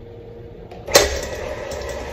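An electric mixer switch clicks on.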